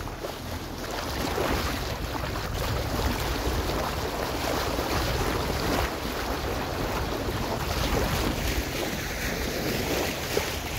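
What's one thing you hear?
Water splashes and rushes against a boat's bow as the boat cuts through the sea.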